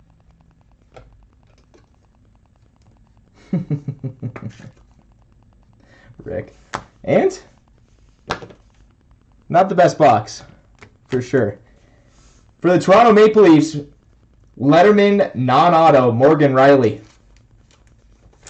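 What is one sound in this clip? Trading cards in plastic sleeves rustle and click as hands handle them.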